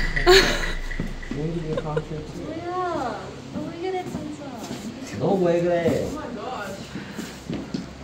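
A young man speaks playfully close by.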